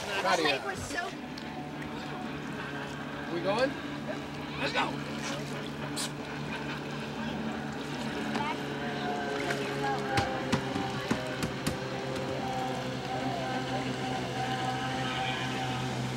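A small motorboat's engine drones steadily across the water.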